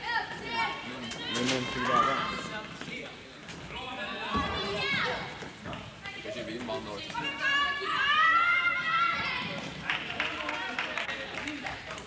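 Children's footsteps patter on a hard floor.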